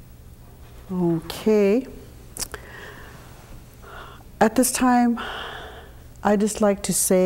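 An elderly woman speaks slowly and calmly into a microphone, with pauses.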